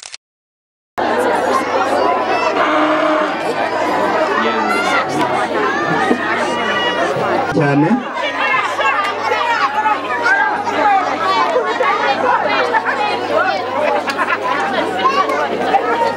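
A crowd of people chatters and cheers outdoors.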